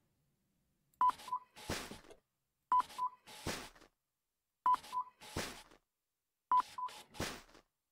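A checkout scanner beeps briefly several times.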